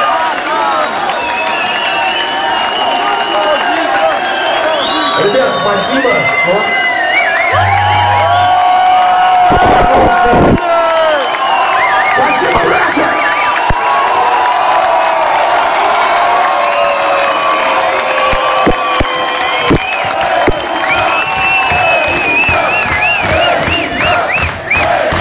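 A large crowd cheers loudly in a big echoing hall.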